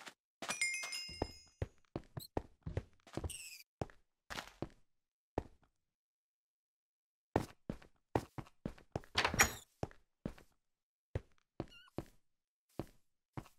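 Footsteps crunch on sand in quick steps.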